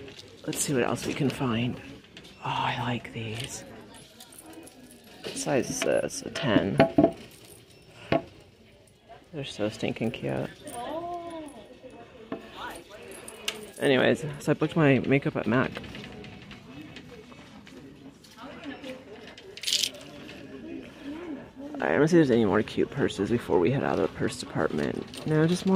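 A shopping cart rolls and rattles across a hard floor.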